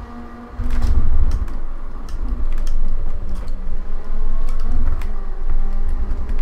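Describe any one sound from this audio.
A race car engine roars at high revs.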